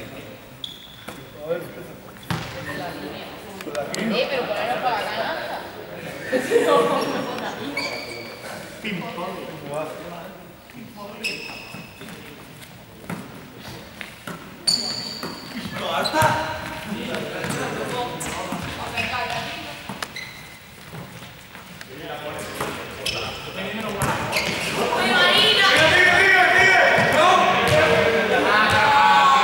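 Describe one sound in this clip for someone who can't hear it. Young people talk and call out in a large echoing hall.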